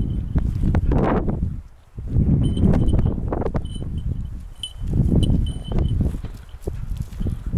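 Hunting dogs run through dry scrub.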